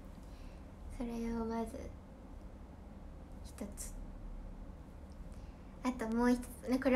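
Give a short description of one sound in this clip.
A young woman speaks close to a microphone in short, lively bursts.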